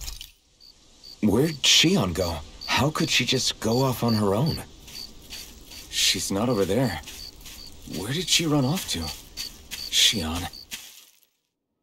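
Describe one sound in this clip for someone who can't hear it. Footsteps pad steadily across grass.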